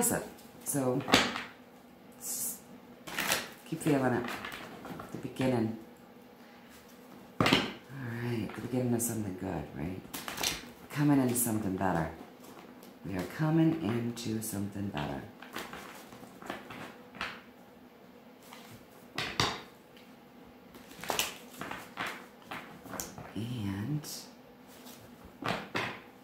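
Cards shuffle and slap together in a woman's hands.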